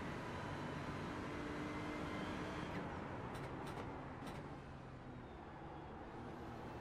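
A race car engine roars steadily, its pitch dropping as the car slows.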